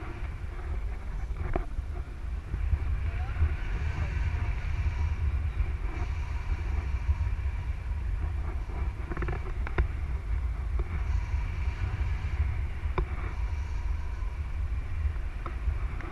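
Wind buffets a microphone in flight on a tandem paraglider, with a deep rumble.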